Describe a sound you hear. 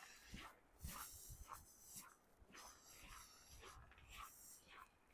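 Footsteps crunch steadily on packed snow.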